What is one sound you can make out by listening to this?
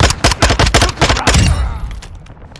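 A rifle fires in a rapid burst of loud shots.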